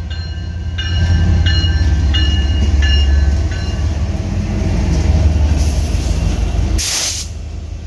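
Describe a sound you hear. Diesel locomotives rumble loudly past close by.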